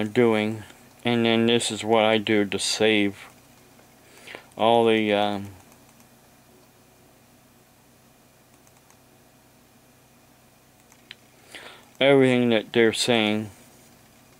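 An older man speaks in short bursts into a close headset microphone, with long pauses.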